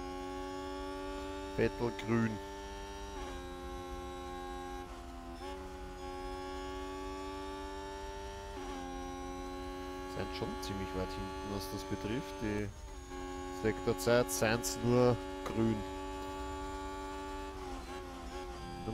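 A racing car engine drones steadily, shifting pitch with each gear change.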